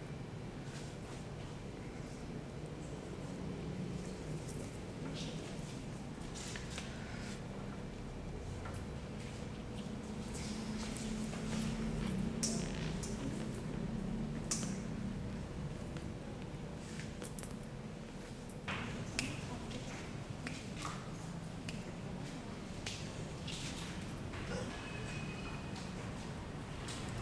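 Hands rub and pat skin during a massage.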